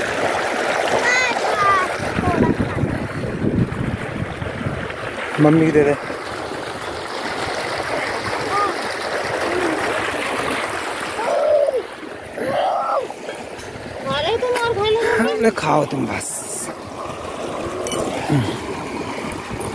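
A woman talks casually nearby, outdoors.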